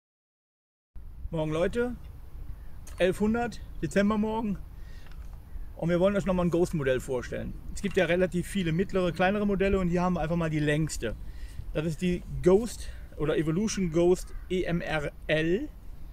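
A middle-aged man talks calmly and close by, outdoors.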